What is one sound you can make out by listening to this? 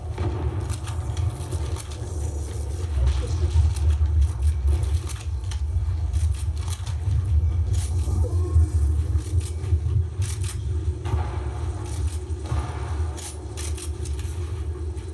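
Gunshots and building sounds from a video game play through a speaker.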